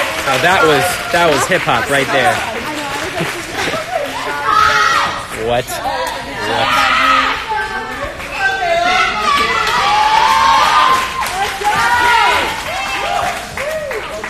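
Young people shout and talk excitedly close by.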